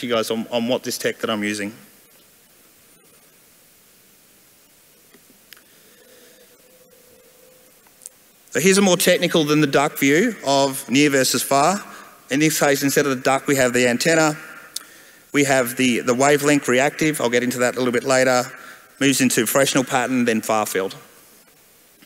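A man speaks calmly into a microphone over a loudspeaker, in pauses.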